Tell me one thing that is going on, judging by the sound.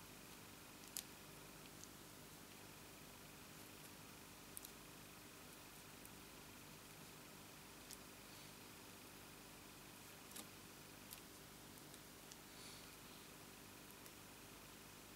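Tweezers click and tap softly against paper.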